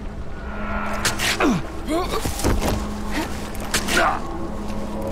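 Heavy blows land in a close struggle.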